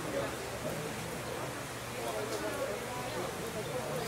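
Leafy branches rustle under a gorilla's feet.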